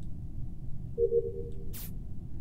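A short electronic chime rings as a download finishes.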